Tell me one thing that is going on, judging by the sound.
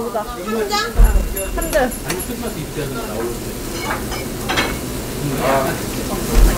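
Chopsticks and dishes clink.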